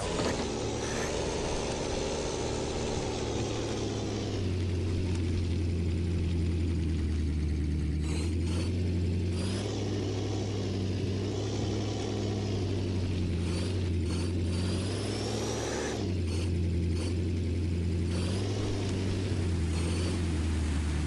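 A truck engine roars and revs.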